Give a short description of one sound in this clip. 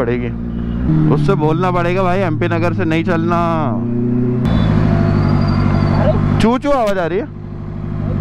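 A motorcycle engine revs sharply several times.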